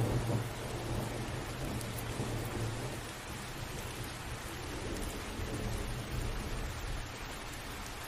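Thunder rumbles low in the distance.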